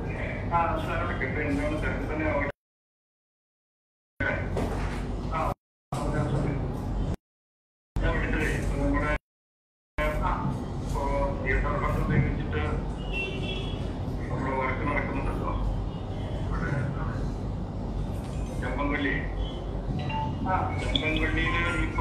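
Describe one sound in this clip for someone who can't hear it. A middle-aged man speaks steadily into microphones, with gaps of silence.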